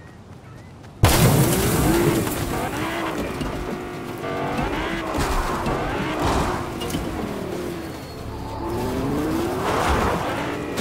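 A car engine roars and revs as a vehicle drives over rough ground.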